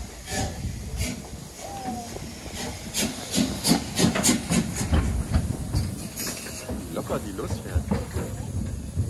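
Steel wheels clank and squeal on the rails.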